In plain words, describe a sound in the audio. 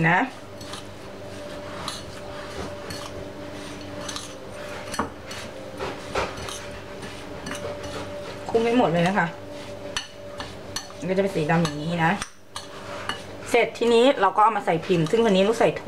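A metal spoon scrapes and clinks against a ceramic bowl.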